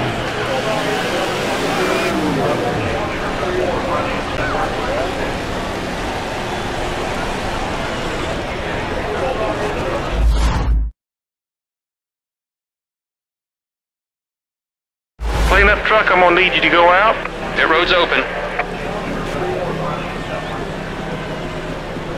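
A race car engine roars.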